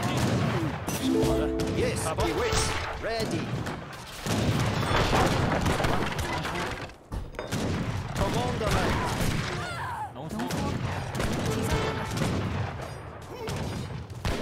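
Swords clash in a battle.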